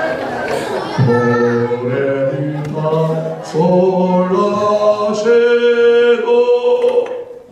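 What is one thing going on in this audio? A group of children sing together through a loudspeaker.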